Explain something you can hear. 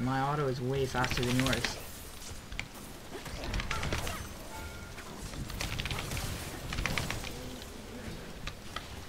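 Spell effects whoosh and crackle during a fantasy battle.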